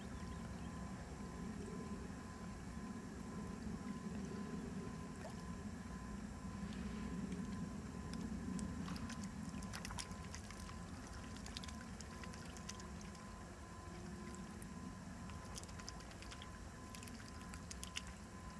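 Small waves lap on an open lake in the wind.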